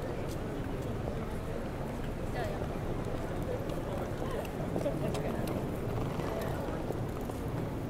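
Footsteps tap on pavement as people cross the street.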